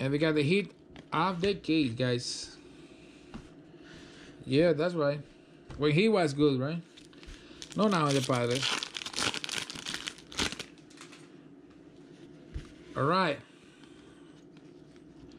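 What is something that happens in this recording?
Trading cards rustle as they are shuffled by hand.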